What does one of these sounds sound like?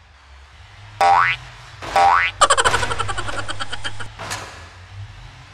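A car thumps over speed bumps.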